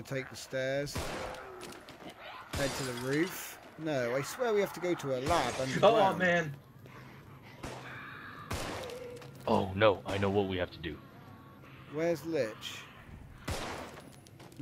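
A pistol fires sharp single shots.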